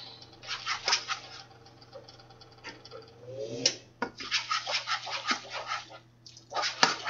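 A spoon scrapes and clinks against a metal pot while stirring.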